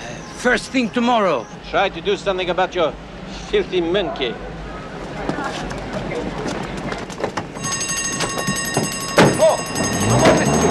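A middle-aged man sings loudly and expressively nearby.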